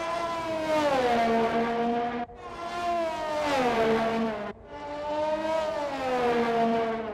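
A racing car engine screams at high revs, its pitch dropping with each gear change.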